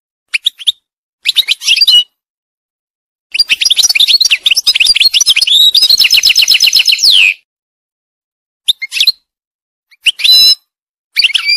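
A goldfinch sings close by in quick bursts of twittering, trilling notes.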